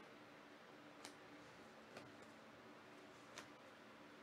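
Trading cards slide and tap against each other in a hand.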